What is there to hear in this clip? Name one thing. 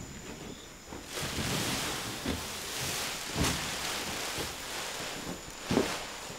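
Plastic sheeting crinkles and rustles.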